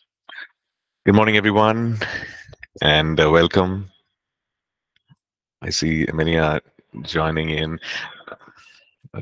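A middle-aged man speaks calmly through a headset microphone over an online call.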